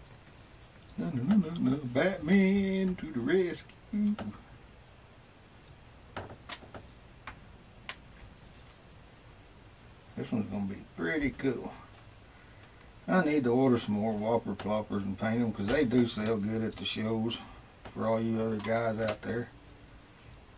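A middle-aged man talks calmly close to a microphone, pausing between phrases.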